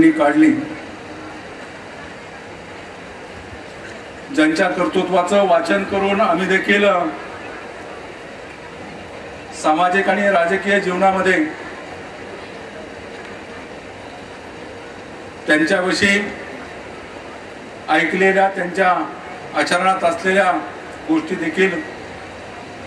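A middle-aged man speaks with emphasis into a microphone, in bursts with pauses, echoing over a loudspeaker outdoors.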